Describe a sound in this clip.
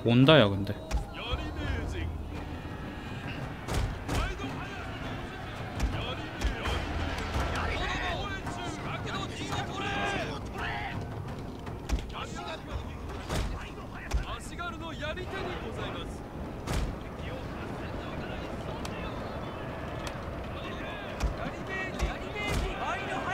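Many soldiers march with a low rumbling clatter.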